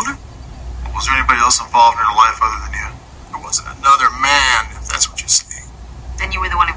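A man answers calmly, heard through a television speaker.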